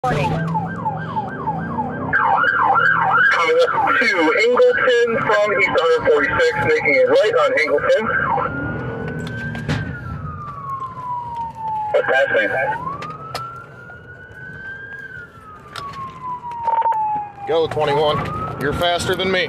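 A police siren wails and yelps close by, switching between fast and slow rising and falling tones.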